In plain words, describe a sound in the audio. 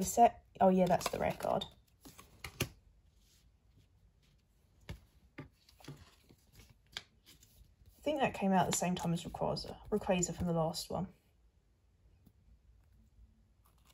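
Playing cards rustle and slide softly in a hand.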